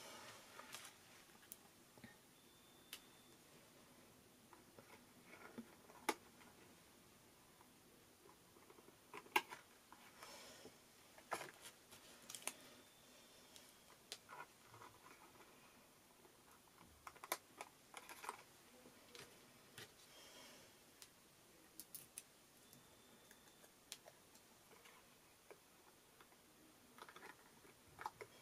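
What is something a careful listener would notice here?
Paper rustles and crinkles as hands fold and handle card.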